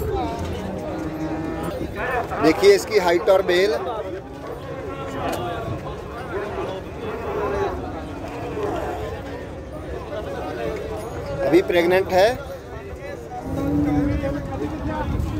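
A crowd murmurs outdoors in the background.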